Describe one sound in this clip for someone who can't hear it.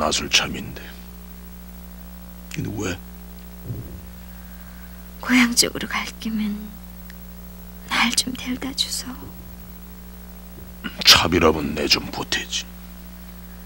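A man speaks quietly, close by, in short phrases.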